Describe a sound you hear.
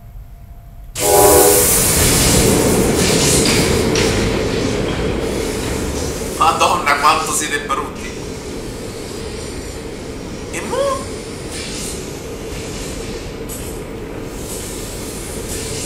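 A large machine rumbles and hums steadily, slowly fading.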